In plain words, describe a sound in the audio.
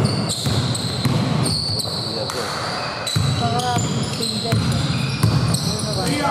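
A basketball bounces on the floor with a hollow thud.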